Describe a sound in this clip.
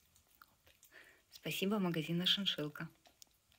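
A puppy eats from a metal bowl.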